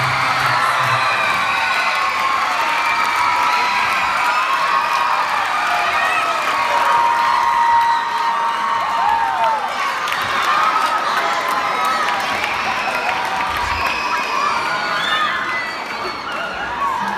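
A large crowd of people cheers, shouts and whistles loudly in an echoing hall.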